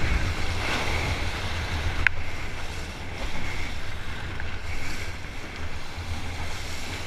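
Wind rumbles across the water.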